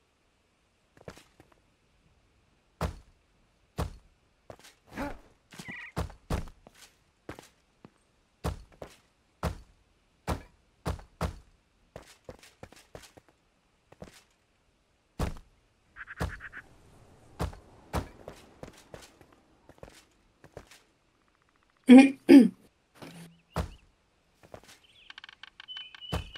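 Sharp knocks and thuds sound repeatedly as building blocks are placed.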